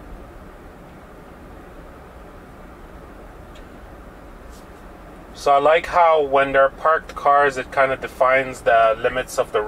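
Tyres rumble softly on a snowy road from inside a moving car.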